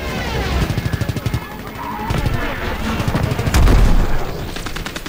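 Explosions boom in the air.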